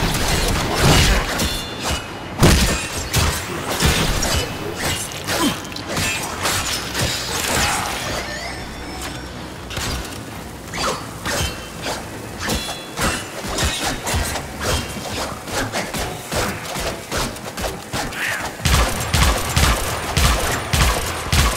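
Rapid gunfire crackles and bursts.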